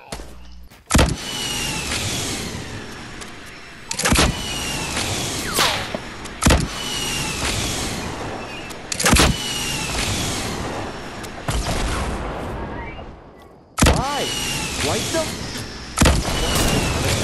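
A shotgun fires loud blasts every few seconds.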